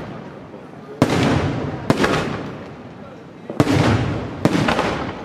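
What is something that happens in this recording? Fireworks burst with loud booms outdoors.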